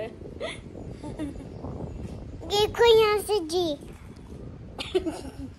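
A young girl talks and squeals playfully close by.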